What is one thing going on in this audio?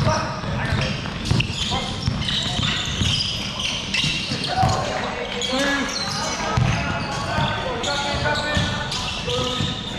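Young players call out and shout to each other.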